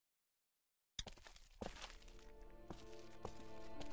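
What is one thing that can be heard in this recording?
Footsteps clang up metal stairs.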